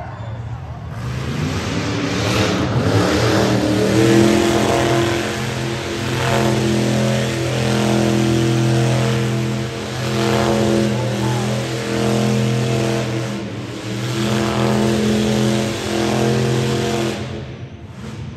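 Tyres screech and squeal as a car spins on the floor.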